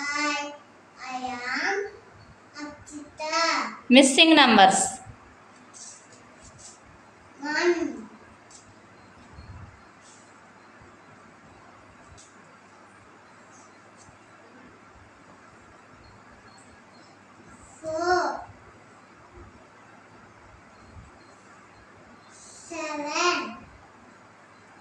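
A young girl speaks up clearly nearby, reciting in short bursts.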